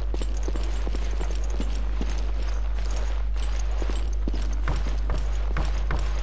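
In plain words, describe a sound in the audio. Footsteps tap steadily on a hard stone floor.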